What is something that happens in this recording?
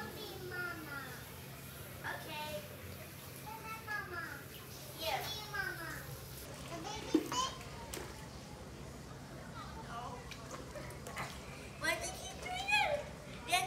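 Children splash and play in water.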